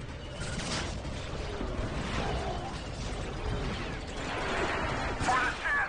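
A hovering gunship's engines rumble steadily.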